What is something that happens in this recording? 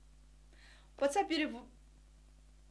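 A young woman speaks briefly and expressively, close to a microphone.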